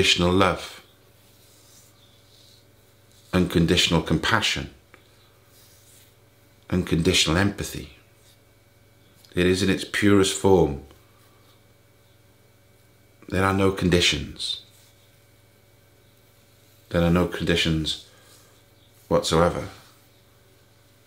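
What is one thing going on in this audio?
A middle-aged man speaks calmly and thoughtfully into a close microphone, in short phrases with long pauses.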